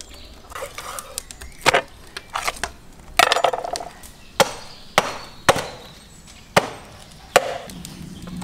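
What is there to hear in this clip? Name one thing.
A cleaver chops through meat and bone on a wooden block.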